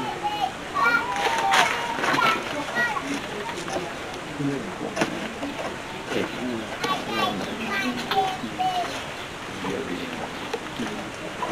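A gloved hand scoops and rustles through damp, crumbly soil.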